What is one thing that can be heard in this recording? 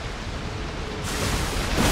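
A blade swings and strikes with a heavy slash.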